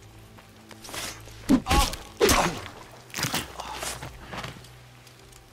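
Heavy blows land with loud thuds in a short, close struggle.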